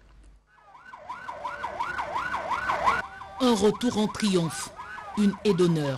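A siren wails nearby, rising and falling quickly.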